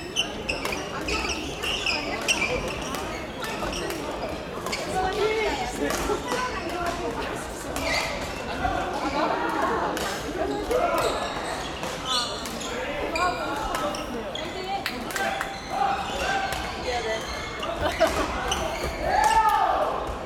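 Many young people chatter in the background.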